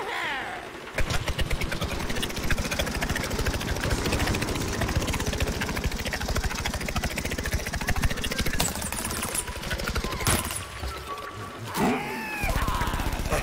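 Rapid laser shots fire in a steady stream.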